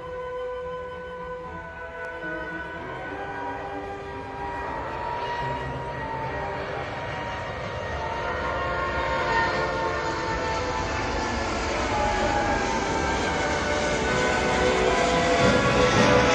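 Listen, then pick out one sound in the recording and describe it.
A jet airliner roars loudly overhead, growing louder as it climbs past.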